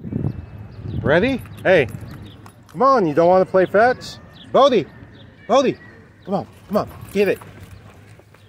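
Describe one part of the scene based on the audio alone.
A dog barks loudly and repeatedly nearby.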